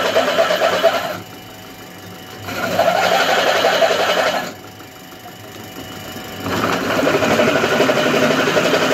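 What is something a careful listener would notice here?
A milling cutter grinds loudly through metal in repeated bursts.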